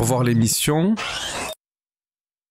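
A menu opens with a short electronic whoosh.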